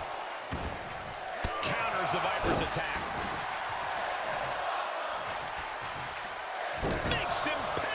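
Heavy thuds of bodies hitting a wrestling mat ring out now and then.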